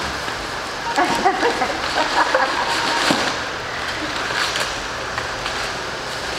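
Packing paper crinkles and rustles.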